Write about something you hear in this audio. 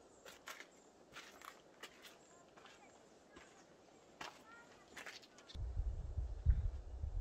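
Footsteps crunch and scrape on rocky ground and dry leaves.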